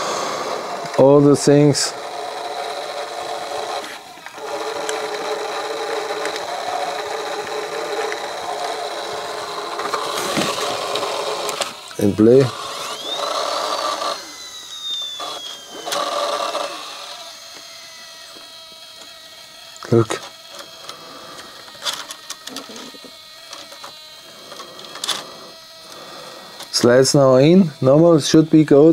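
Small mechanical parts click and rattle as hands work on a device.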